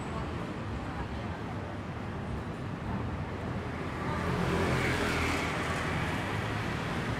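Traffic hums steadily along a city street outdoors.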